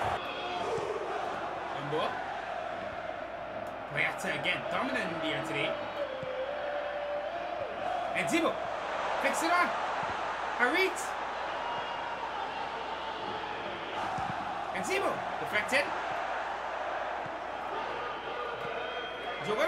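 A stadium crowd roars and chants steadily.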